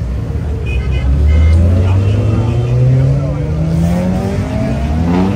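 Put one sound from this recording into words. A sports car engine roars and rises in pitch as the car speeds up.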